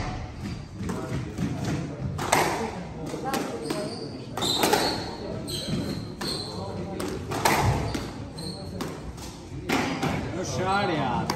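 A squash ball smacks sharply against the walls and rackets in an echoing court.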